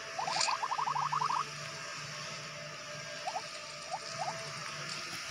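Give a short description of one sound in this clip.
Short rising electronic blips from a mobile game chirp in quick runs.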